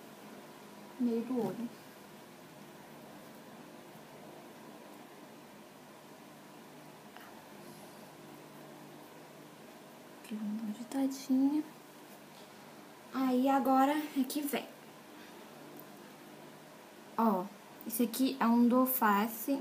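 A young woman speaks calmly and close by in short bursts.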